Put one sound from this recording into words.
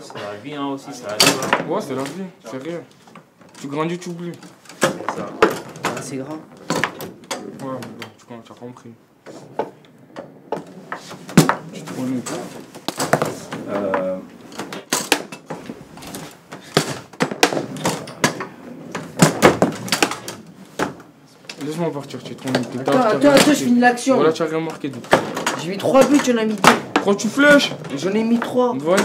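Young men talk and laugh nearby.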